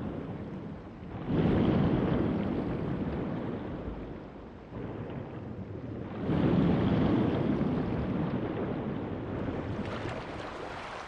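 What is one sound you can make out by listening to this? Water surges and swooshes around a swimmer underwater.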